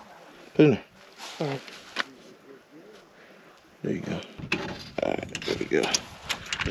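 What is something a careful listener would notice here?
A metal pole clicks and clanks as hands fit it into a clamp.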